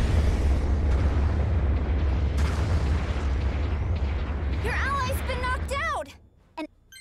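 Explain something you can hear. Gunfire crackles over a loud, deep rumble.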